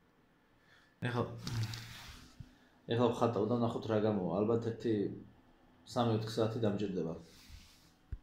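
A man speaks calmly and close by, heard through a microphone.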